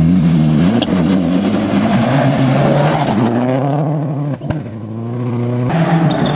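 Gravel sprays and crackles under a car's tyres.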